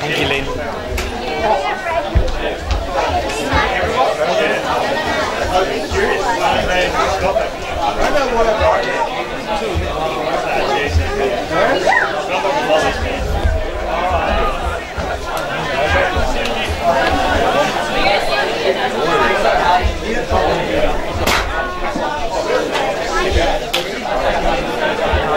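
Adult spectators talk and call out nearby, outdoors.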